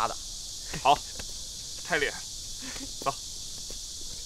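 A second young man answers with a laugh.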